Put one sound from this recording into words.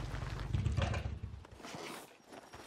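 A motorcycle engine rumbles and then cuts out.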